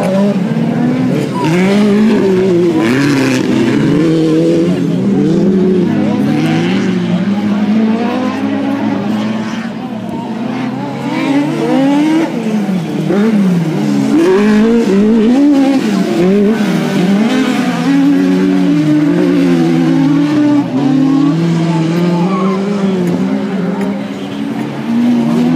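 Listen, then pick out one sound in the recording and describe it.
Tyres spray loose dirt as cars slide through a turn.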